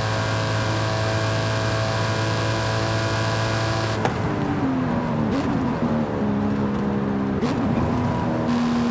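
A car engine roars steadily at high speed, then drops in pitch as the car slows down.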